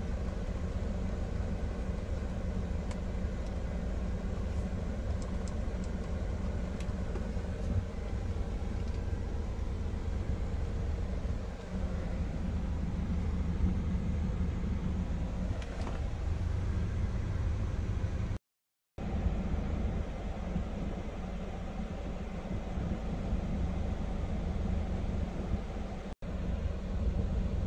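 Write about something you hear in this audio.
Air blows steadily from the vents.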